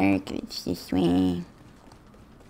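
A boy speaks excitedly into a close microphone.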